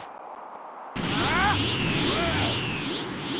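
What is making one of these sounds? A crackling aura hums and surges.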